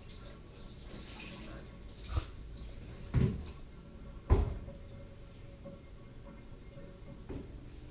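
Water pours from a plastic pitcher into a bathtub.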